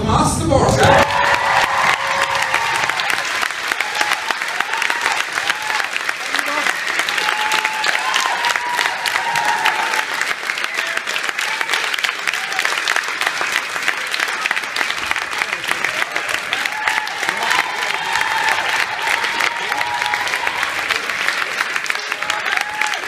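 People in the audience cheer and whoop.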